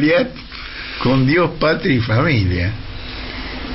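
An elderly man speaks calmly, heard through a radio broadcast.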